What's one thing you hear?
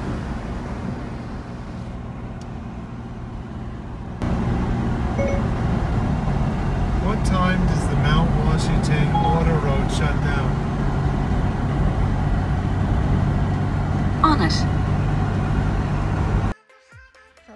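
Tyres hum steadily on a highway from inside a moving car.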